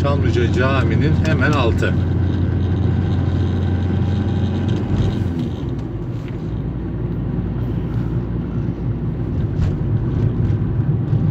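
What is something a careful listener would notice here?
A car engine hums steadily from inside the car as it drives along a street.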